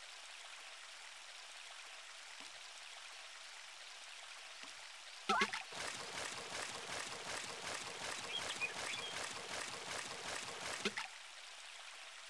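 Water flows and trickles softly.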